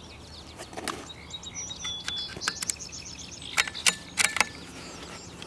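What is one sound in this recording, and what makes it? Rifle cartridges click metallically as a man handles them at a rifle.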